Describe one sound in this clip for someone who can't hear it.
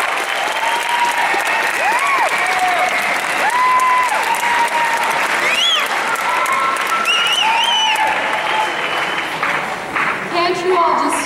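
An audience cheers and whistles loudly in a large hall.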